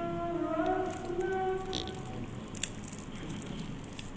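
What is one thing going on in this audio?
A small plastic lid clicks and rattles in a man's hands.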